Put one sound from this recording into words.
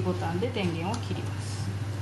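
A button clicks softly under a finger press.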